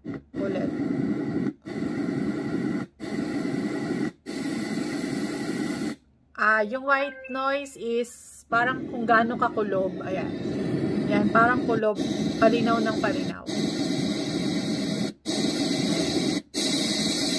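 A small speaker plays a steady whooshing noise that cuts off and restarts in short breaks.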